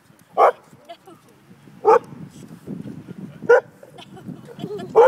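A dog barks sharply close by.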